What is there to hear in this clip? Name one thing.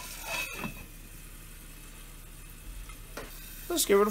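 A metal lid clinks against a pan.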